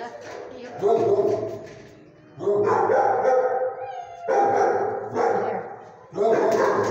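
A small dog howls in long, wavering bursts close by.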